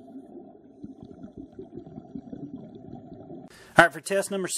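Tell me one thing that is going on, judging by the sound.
Water burbles and rumbles, heard muffled underwater.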